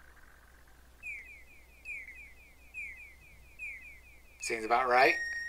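A retro video game plays quick repeating electronic chirps.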